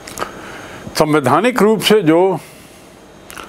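A middle-aged man speaks calmly and clearly into a close microphone.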